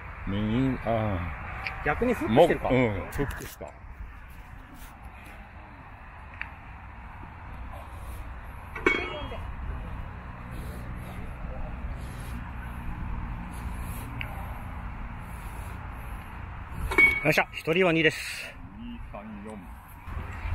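A man talks casually nearby outdoors.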